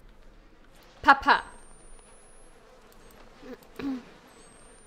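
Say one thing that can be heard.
A young woman speaks in short bursts into a close microphone.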